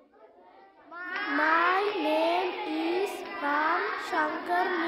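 Young boys exclaim loudly together.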